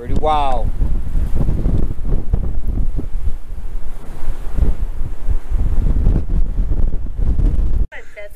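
Strong wind gusts and rumbles across open ground outdoors.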